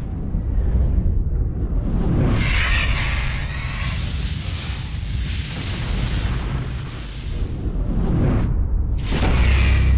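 Flames roar and whoosh past.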